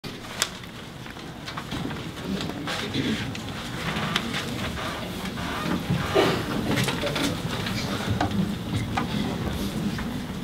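A large mixed choir sings together in a hall.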